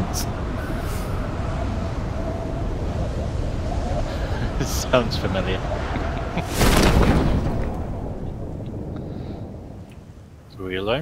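Wind rushes loudly past a skydiver in freefall.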